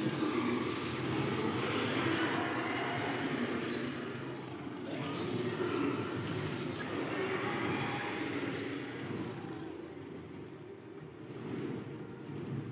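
Strong wind howls and rushes steadily.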